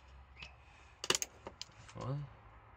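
Small plastic pieces click and rattle on a hard surface.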